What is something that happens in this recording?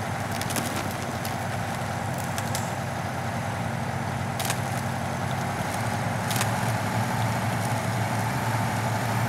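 Snow and ice crunch under the truck's tyres.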